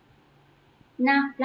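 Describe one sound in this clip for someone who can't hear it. A young woman speaks briefly through a microphone.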